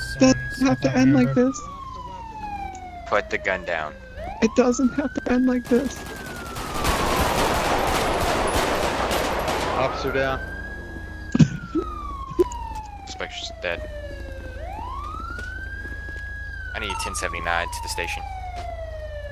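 A police siren wails, rising and falling in long sweeps.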